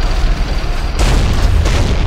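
Aircraft engines roar overhead.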